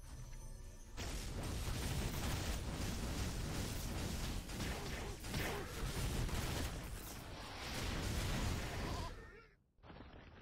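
Game sword slashes and magic blasts crackle rapidly.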